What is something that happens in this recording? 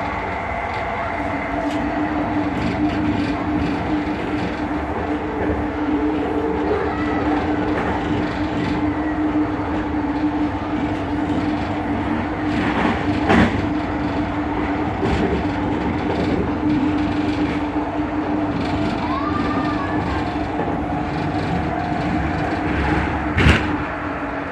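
A train rumbles and hums steadily along its track, heard from inside a carriage.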